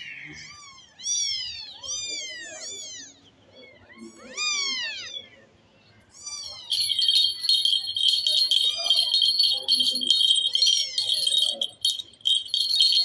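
Kittens mew in high, thin cries.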